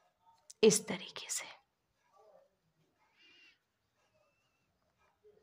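Hands softly rustle crocheted yarn cloth.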